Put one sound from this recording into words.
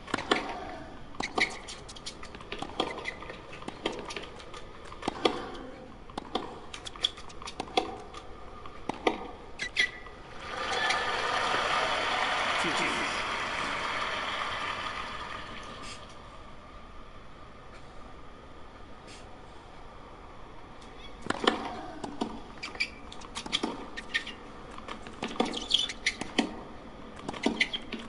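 Tennis balls are struck sharply back and forth with racket pops.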